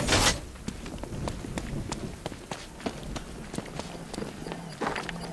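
Footsteps splash on a wet street.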